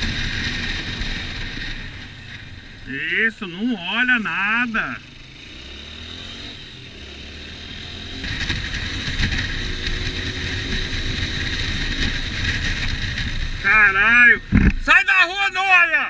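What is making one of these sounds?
A motorcycle engine hums and revs while riding.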